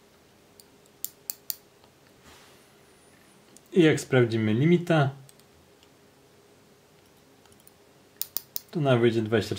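A small metal ratchet clicks a few times as it is turned.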